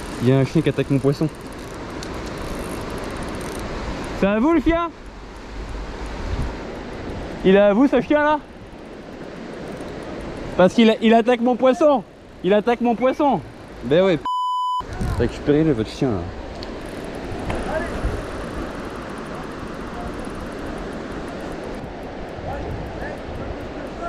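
A fishing reel whirs as its handle is wound.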